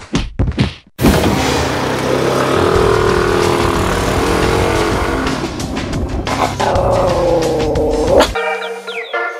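A scooter engine runs as the scooter rides off.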